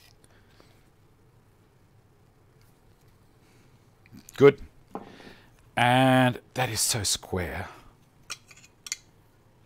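Small metal tool parts click in a man's hands.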